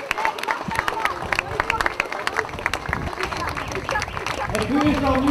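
A crowd claps along outdoors.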